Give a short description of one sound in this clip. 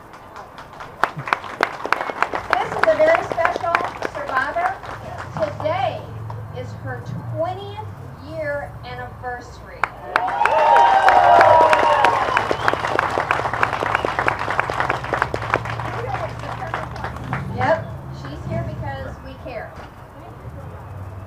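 A crowd claps and cheers outdoors.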